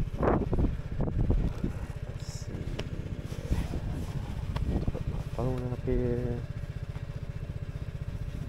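A scooter engine idles with a steady, rapid low putter.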